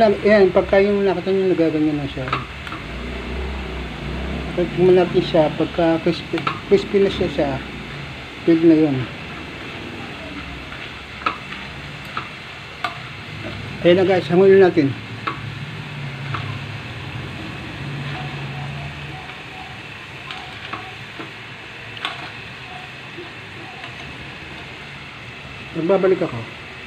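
Noodles sizzle and bubble in hot oil.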